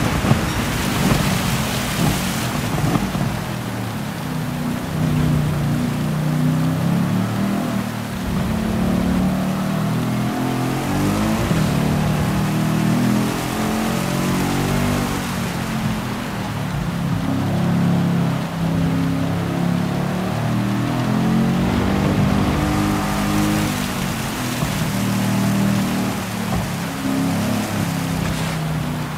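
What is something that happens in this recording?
A race car engine roars steadily, its pitch rising and falling through the gears.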